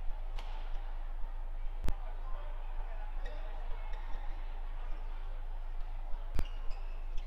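Badminton rackets smack a shuttlecock back and forth.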